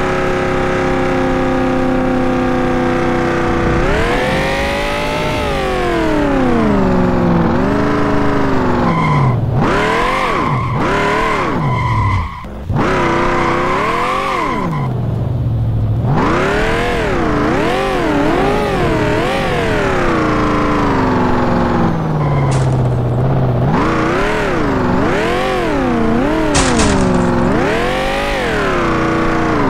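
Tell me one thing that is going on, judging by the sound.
A racing car engine roars and revs up and down.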